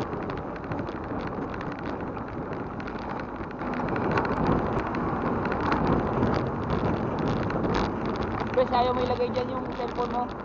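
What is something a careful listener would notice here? Wind rushes past while riding along a road outdoors.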